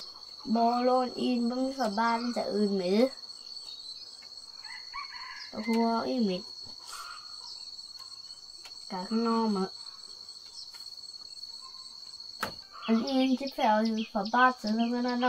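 A boy speaks calmly, close by, in short phrases.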